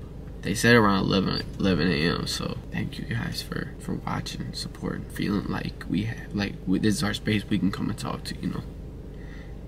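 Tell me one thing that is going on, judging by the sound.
A young man talks casually close to the microphone.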